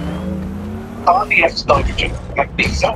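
A car door opens and slams shut.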